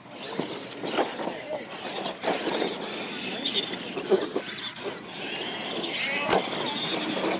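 Toy trucks thud as they land after jumps.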